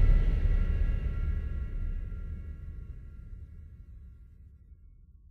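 A deep, rumbling blast from a fantasy battle booms and slowly fades away.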